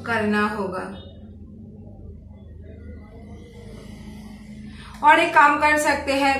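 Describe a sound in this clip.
A young woman speaks clearly and with animation close to a microphone.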